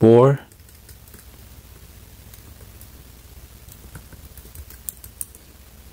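Fingers tap softly on a laptop keyboard.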